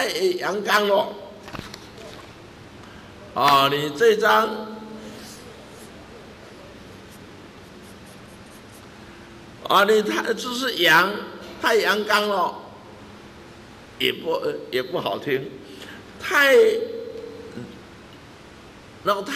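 An older man speaks calmly and steadily into a microphone.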